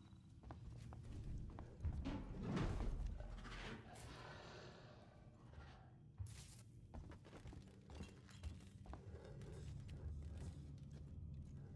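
Footsteps tread on a metal floor.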